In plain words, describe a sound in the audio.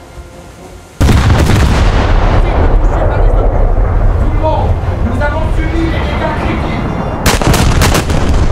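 Heavy naval guns fire with loud booming blasts.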